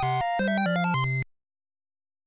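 A short electronic tune plays.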